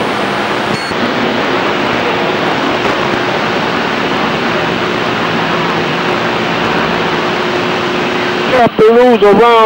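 Radio static hisses steadily from a receiver.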